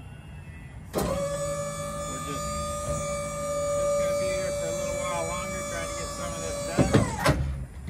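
A hydraulic liftgate motor whines steadily as the platform folds up.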